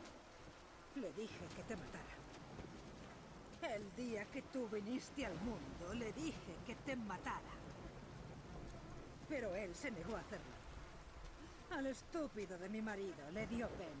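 A woman speaks angrily and bitterly, close by.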